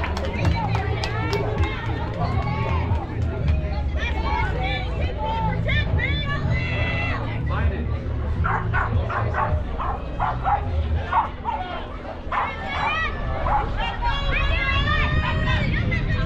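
Young girls shout and cheer across an open field.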